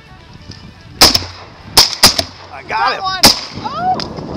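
Shotguns fire several loud blasts in the open air.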